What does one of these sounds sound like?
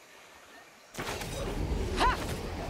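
Swords swish through the air in quick swings.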